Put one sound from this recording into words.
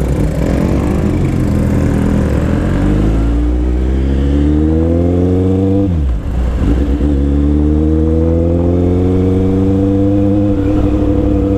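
A motorcycle engine roars close by, rising in pitch as it speeds up, dropping briefly at a gear change, then climbing again.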